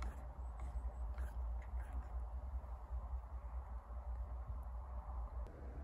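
A wooden spoon clinks and scrapes against a wooden cup while stirring tea.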